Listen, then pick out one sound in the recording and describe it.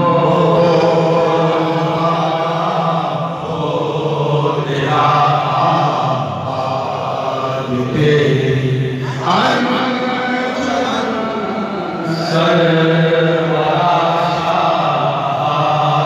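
A crowd chants in reply.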